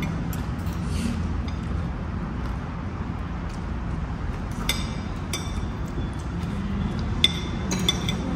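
Cutlery clinks and scrapes against a plate.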